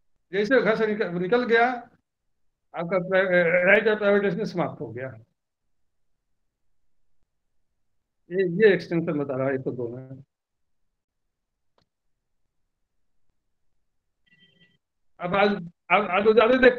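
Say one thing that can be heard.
An elderly man speaks calmly over an online call, pausing between phrases.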